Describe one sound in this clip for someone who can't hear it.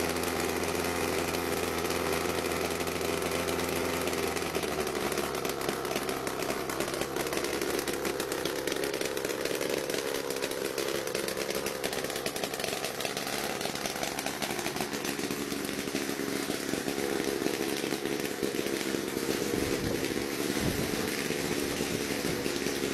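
A small engine buzzes loudly and drifts away.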